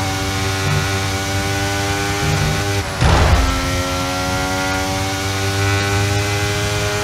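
A racing car engine screams steadily at high revs.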